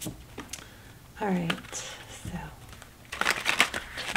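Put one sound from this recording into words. Playing cards are shuffled with a quick riffling flutter.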